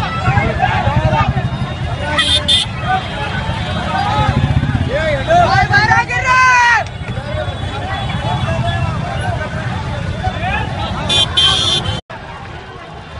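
A large crowd of men shouts and clamours excitedly close by.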